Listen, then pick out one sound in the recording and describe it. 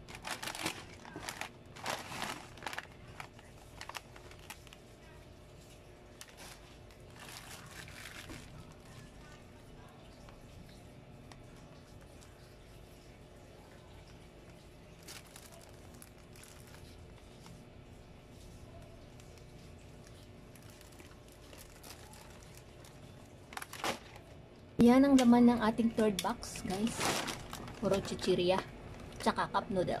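Plastic snack packets crinkle and rustle as hands handle them.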